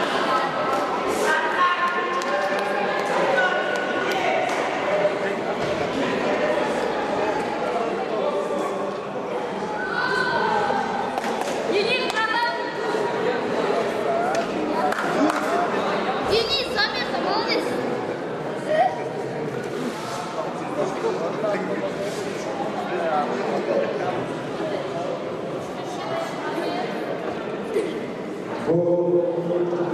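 A crowd murmurs and calls out in a large echoing hall.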